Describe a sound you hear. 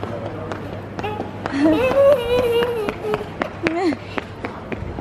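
A young girl squeals and babbles playfully close by.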